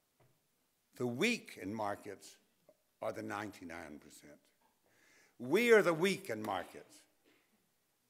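An elderly man speaks with emphasis into a microphone, in pauses.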